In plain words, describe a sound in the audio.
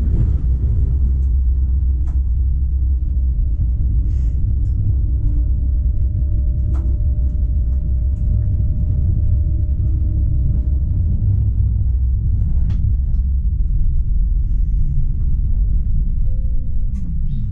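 A tram rumbles steadily along rails.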